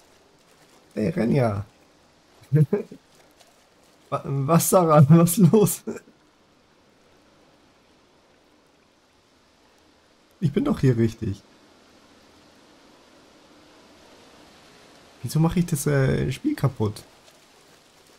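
A young man talks calmly and casually into a close microphone, in short bursts.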